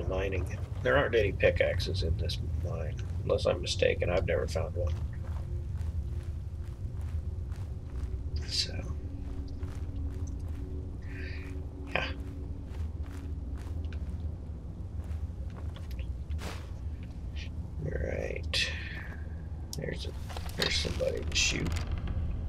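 Footsteps crunch on gravel and wooden boards.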